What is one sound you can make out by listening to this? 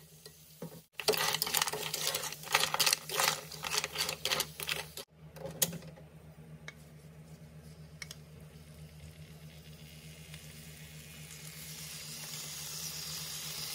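Shellfish sizzle loudly in hot oil.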